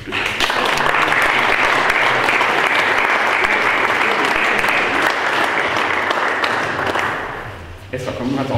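A group of people applauds in an echoing hall.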